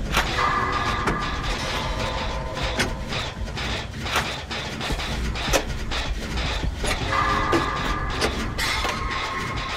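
A short electronic warning tone sounds.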